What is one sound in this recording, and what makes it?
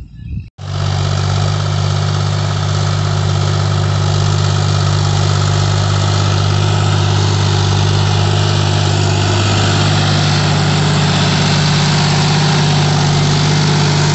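A tractor diesel engine rumbles steadily up close.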